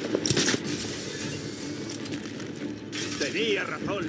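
Glass shatters loudly and shards scatter.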